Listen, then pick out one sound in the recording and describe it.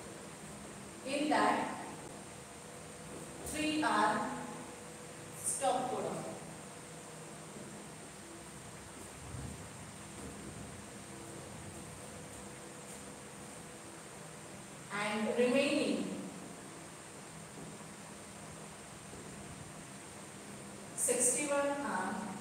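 A woman speaks calmly in short phrases.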